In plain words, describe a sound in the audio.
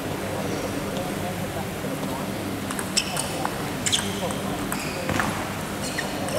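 A ping-pong ball clicks sharply back and forth off paddles and a table in a large echoing hall.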